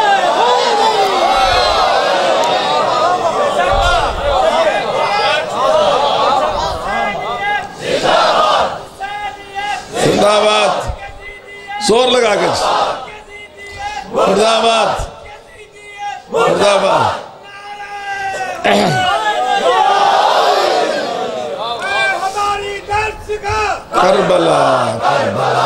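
A middle-aged man speaks with strong feeling into a microphone, heard through loudspeakers in an open space.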